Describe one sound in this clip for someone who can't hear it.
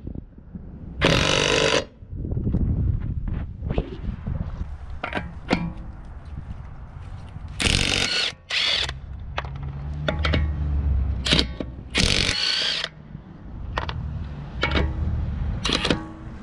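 An impact wrench hammers in loud bursts on wheel nuts.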